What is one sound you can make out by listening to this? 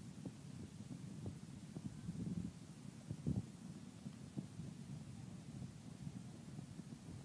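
Horses' hooves thud on soft dirt at a trot.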